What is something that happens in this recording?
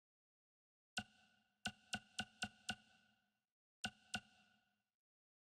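Short electronic menu beeps sound several times.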